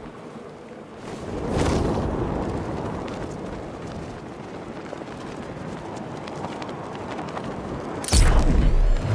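Wind rushes past during a fast glide through the air.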